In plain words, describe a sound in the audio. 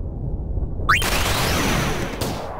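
A magical whooshing shimmer swells as a spell is cast.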